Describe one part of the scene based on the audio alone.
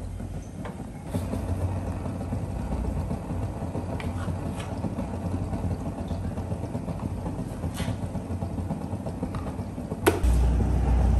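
A gas burner hisses and roars steadily.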